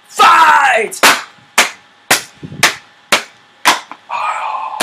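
A man claps his hands in a steady rhythm.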